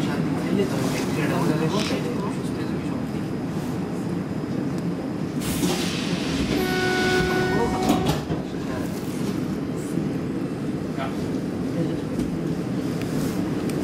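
A tram rumbles steadily along the rails.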